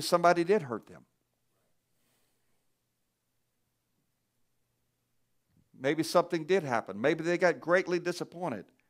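A man speaks through a microphone in a large room, pausing between phrases.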